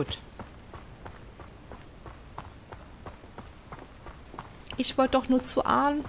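Hooves clop steadily on a dirt path.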